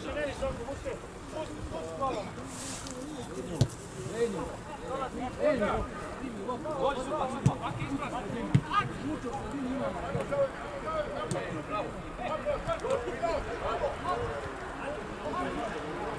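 Men shout and call to each other across an open field.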